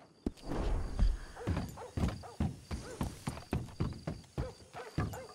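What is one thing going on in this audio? Horse hooves clop on hollow wooden boards.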